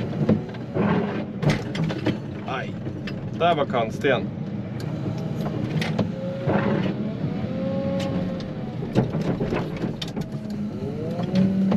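A metal plow blade clanks and knocks.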